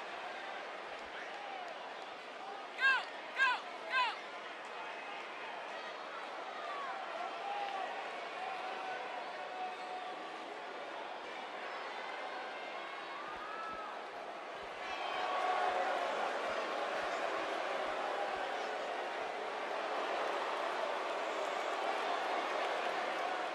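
A crowd cheers in a large echoing arena, growing louder partway through.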